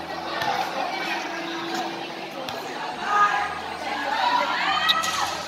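A crowd chatters and shouts in a large echoing space.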